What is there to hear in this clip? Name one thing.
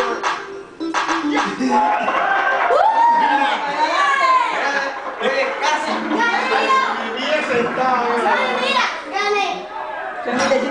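Pop music plays from a television.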